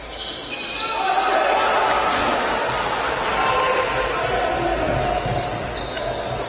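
A small crowd cheers in an echoing hall.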